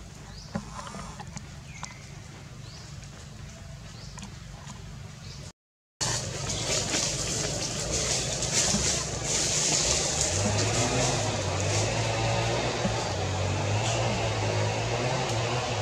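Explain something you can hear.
Leaves rustle as a monkey moves through the branches.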